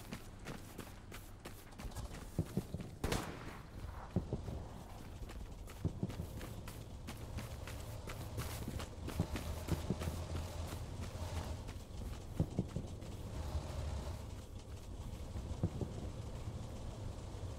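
Wind blows steadily across open ground, rustling leaves.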